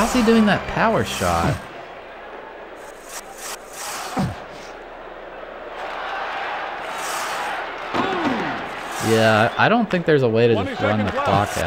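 A hockey game's crowd murmurs steadily in the background.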